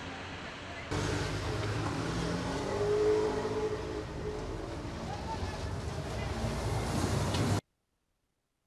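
A bus engine rumbles as the bus drives past close by.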